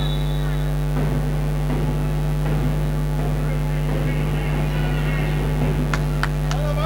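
A ball thuds on a hard floor in a large echoing hall.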